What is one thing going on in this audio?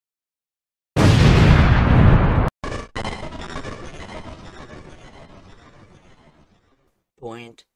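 A loud explosion booms and slowly rumbles away.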